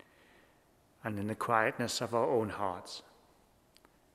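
An older man speaks calmly into a microphone in a large echoing room.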